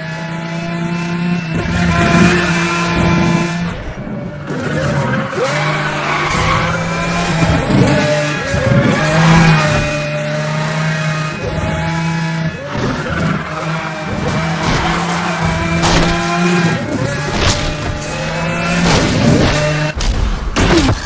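A powerful car engine roars and revs up and down.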